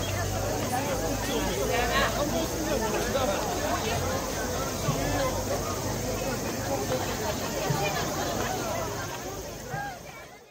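A large crowd chatters and calls out loudly outdoors.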